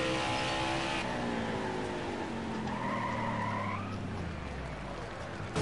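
A V8 stock car engine drops in pitch as the car slows for a corner.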